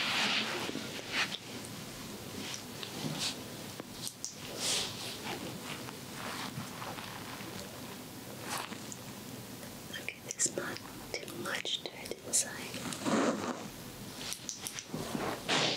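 A small tool scratches and taps softly right next to an ear.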